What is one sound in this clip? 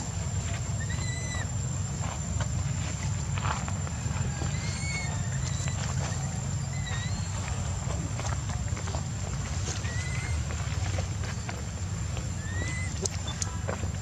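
A baby monkey squeaks in short, high chirps.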